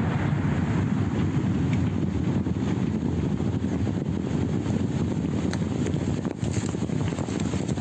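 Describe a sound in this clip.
Clods of earth thud and patter down onto a field.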